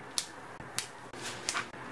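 Fresh stems snap crisply between fingers.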